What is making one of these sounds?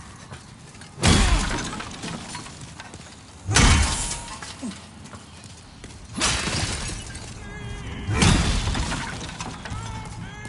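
Wooden debris smashes and clatters loudly several times.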